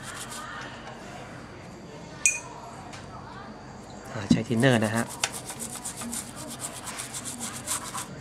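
A brush scrubs rapidly against a circuit board.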